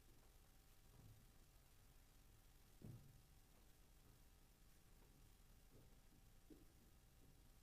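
Flag poles knock softly as they are set into their stands.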